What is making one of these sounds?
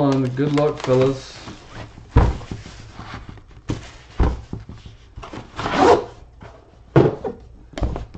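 A cardboard box knocks and scrapes against a table.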